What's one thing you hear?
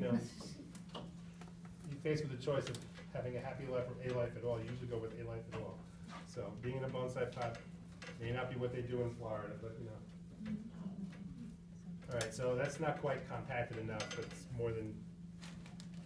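A middle-aged man talks calmly and with animation, close by.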